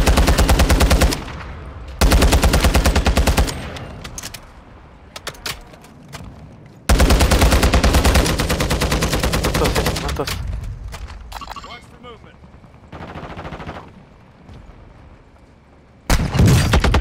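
An assault rifle fires rapid automatic bursts.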